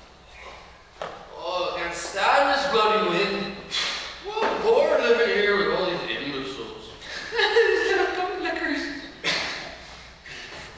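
A man speaks loudly and with feeling in a large echoing hall.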